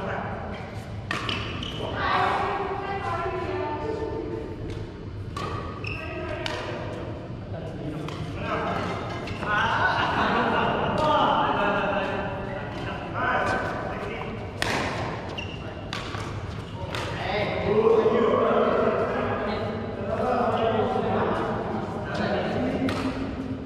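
Shuttlecocks are struck with sharp racket pops in a large echoing hall.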